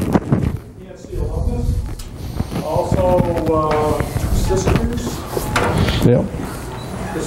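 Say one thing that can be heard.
A man speaks to an audience in a room with some echo.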